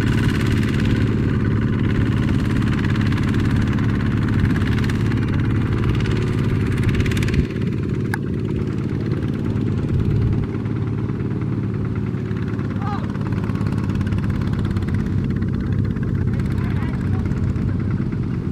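A small engine chugs steadily close by.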